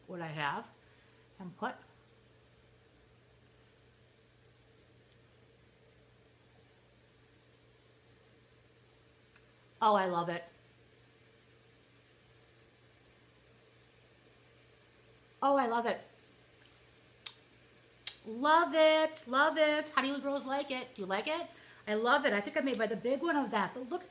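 A young woman speaks close to a microphone in short bursts, then talks steadily and with animation.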